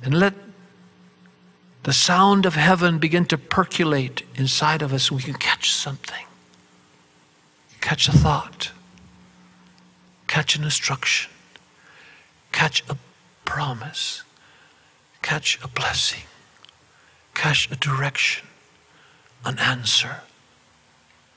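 An elderly man speaks with animation into a microphone, in bursts with pauses.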